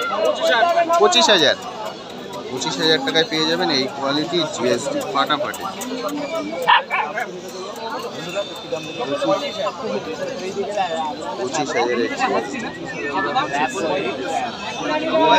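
A crowd of men chatters in the background outdoors.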